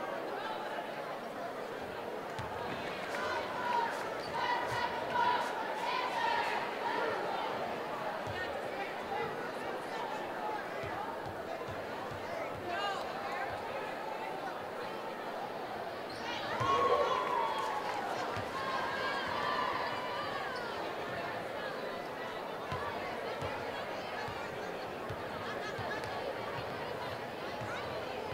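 A large crowd murmurs and cheers in an echoing gym.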